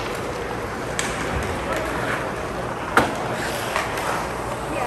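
Hockey sticks clack against the puck and the ice.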